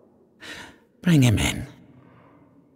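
An elderly man speaks slowly in a low voice.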